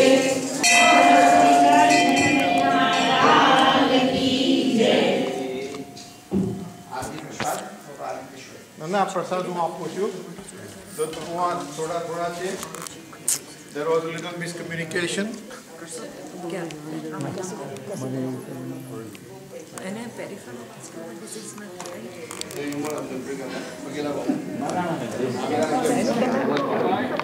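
A group of women and men sing together in a large echoing hall.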